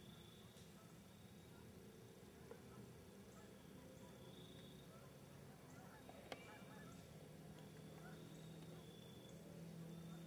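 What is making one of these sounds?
Dry leaves rustle softly under a deer's hooves.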